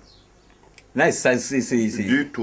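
Men talk calmly nearby.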